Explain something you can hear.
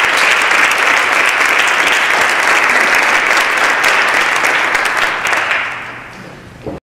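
An audience applauds loudly in a large hall and the clapping fades away.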